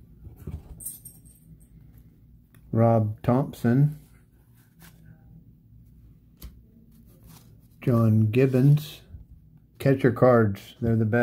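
Trading cards softly slide and rustle between fingers.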